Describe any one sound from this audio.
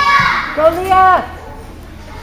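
A girl shouts loudly in cheer nearby.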